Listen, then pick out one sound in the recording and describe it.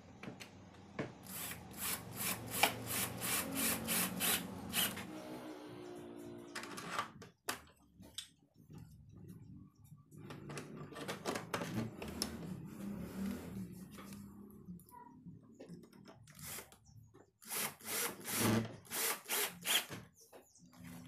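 A cordless drill whirs in short bursts, driving screws.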